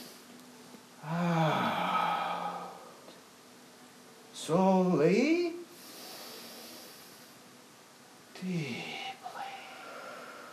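A woman cries out and sobs in loud, wavering bursts.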